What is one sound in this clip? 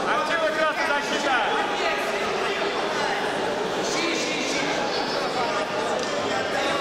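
A crowd of spectators shouts and cheers in a large hall.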